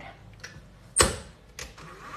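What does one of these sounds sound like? A stand mixer's head clicks shut.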